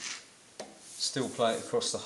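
A hand slides a metal bar across a steel plate.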